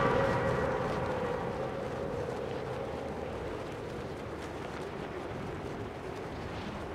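Wind rushes steadily past a gliding character.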